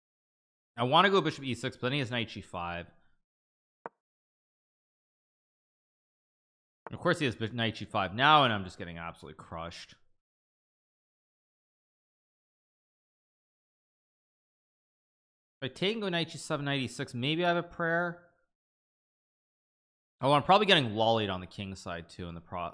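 A man talks with animation into a close microphone, in short bursts with pauses.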